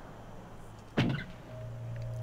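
A wooden door swings open.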